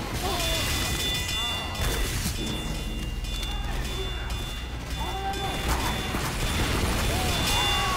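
A flamethrower roars in short gusts.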